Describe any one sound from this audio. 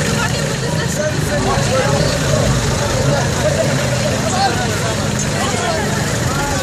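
A crowd of men and women chatter loudly outdoors nearby.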